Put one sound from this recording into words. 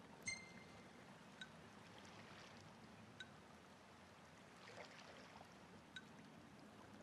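Short electronic menu blips sound one at a time.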